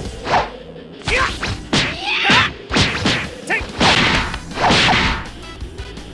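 Punches and kicks land with sharp, quick thuds in a video game fight.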